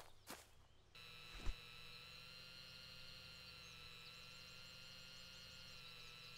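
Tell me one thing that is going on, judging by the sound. A drone hums steadily.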